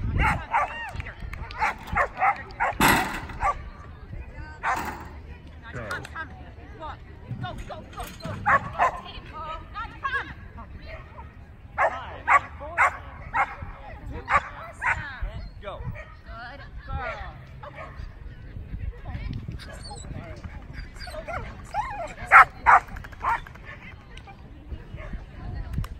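A woman calls out short commands to a dog at a distance outdoors.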